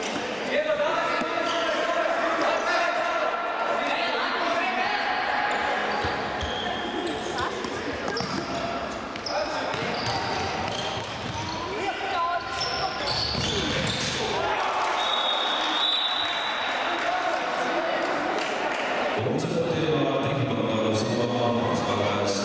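Sneakers squeak on a hard floor in an echoing hall.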